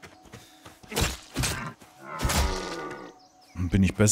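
A deer collapses onto the grass with a thud.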